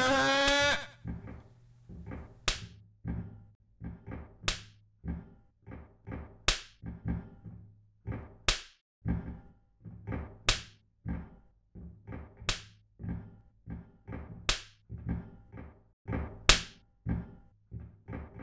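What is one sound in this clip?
Footsteps tap steadily on a hard floor in an echoing hallway.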